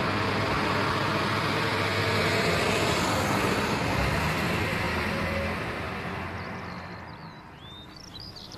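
A bus engine rumbles as the bus drives along and fades away.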